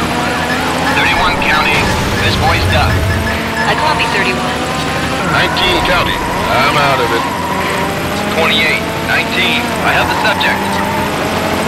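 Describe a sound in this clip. A young woman talks with animation close to a microphone.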